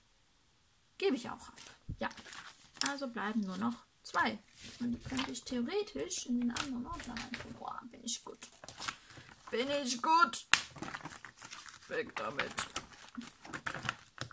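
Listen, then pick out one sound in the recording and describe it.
Paper sheets shuffle and slide.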